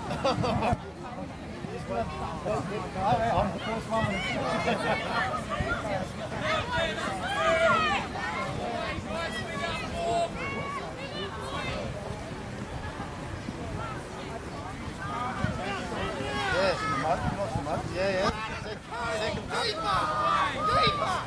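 Children shout to each other on an open field.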